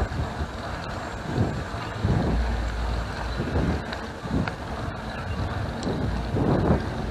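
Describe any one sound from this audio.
Wind rushes past loudly and buffets in gusts.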